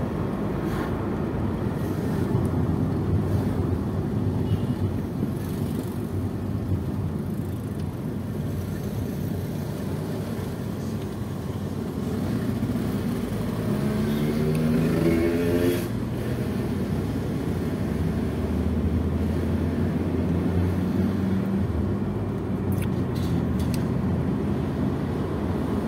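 A car engine hums steadily with road rumble from inside a moving car.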